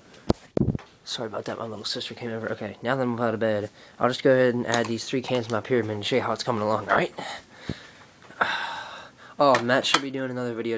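A young man talks close to a phone's microphone.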